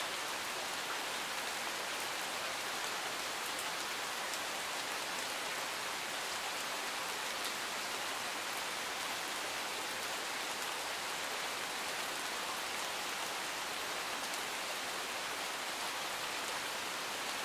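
Steady rain patters on leaves and gravel outdoors.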